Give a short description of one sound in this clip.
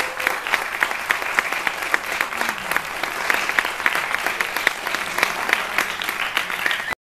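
An audience applauds steadily in a large echoing hall.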